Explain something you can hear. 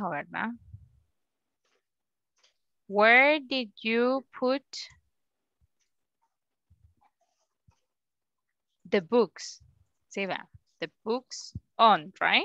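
A young woman speaks calmly through an online call microphone, pausing between phrases.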